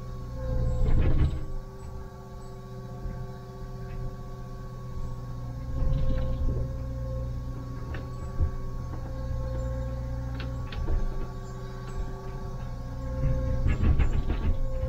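A diesel excavator engine rumbles steadily from inside the cab, rising in bursts as it works.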